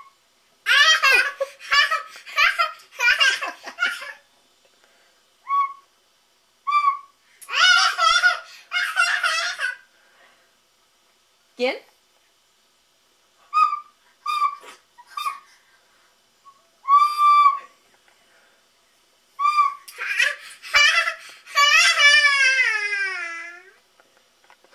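A toddler girl squeals and babbles excitedly close by.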